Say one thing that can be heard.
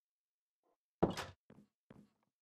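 A wooden door shuts with a knock.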